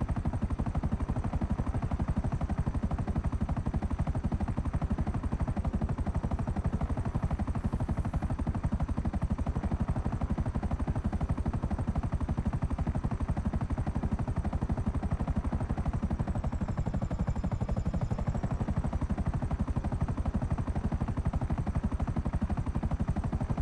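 A helicopter's rotor blades thump rapidly and steadily from inside the cabin.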